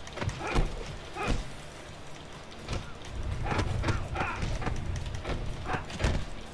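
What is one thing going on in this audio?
Punches and blows thud in a video game fight.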